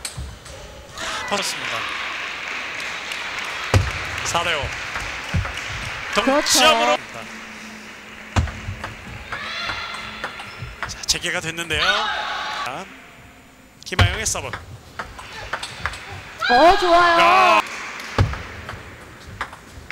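A table tennis ball clicks sharply back and forth off paddles and the table.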